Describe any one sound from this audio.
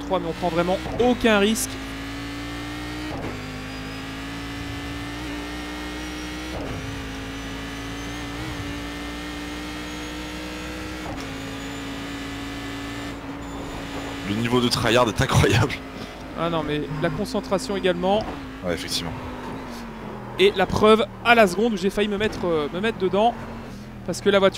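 A racing car engine drones at high revs, dipping briefly with each gear change.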